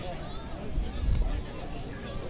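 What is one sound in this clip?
A baseball smacks into a catcher's glove.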